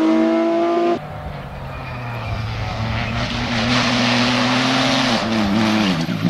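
Another rally car engine grows louder as the car approaches.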